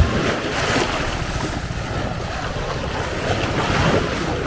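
Water splashes as someone wades through the shallows.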